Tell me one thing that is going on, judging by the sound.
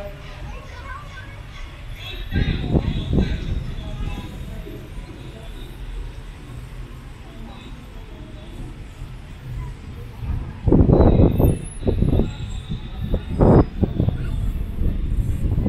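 Traffic hums steadily in the distance.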